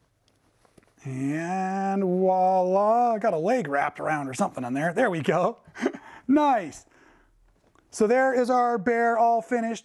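A young man talks animatedly and playfully, close by.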